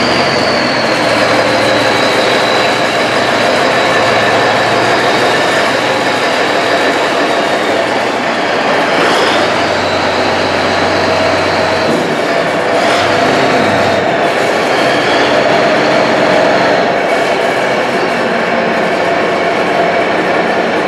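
A diesel wheel loader drives forward, its engine droning and whining.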